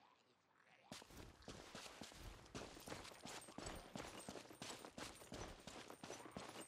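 Footsteps patter quickly along a dirt path.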